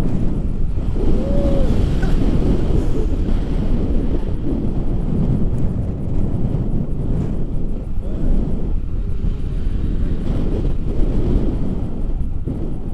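A young man speaks and laughs cheerfully close by, heard over the wind.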